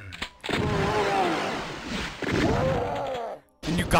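A shotgun is pumped with a metallic clack.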